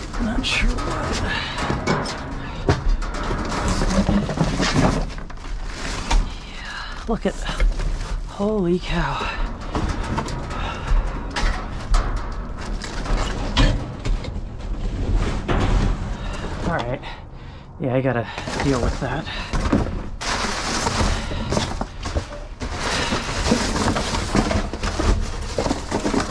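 Cardboard boxes rustle and scrape as they are moved about.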